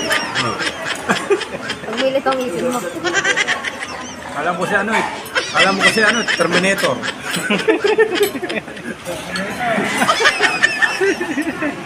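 A crowd of young men and women chatter nearby.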